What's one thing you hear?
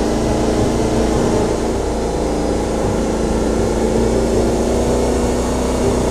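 A forklift motor hums steadily.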